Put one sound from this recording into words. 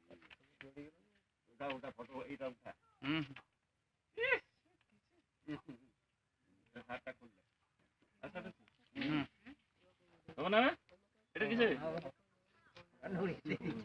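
A man speaks loudly and with animation nearby, in bursts with pauses.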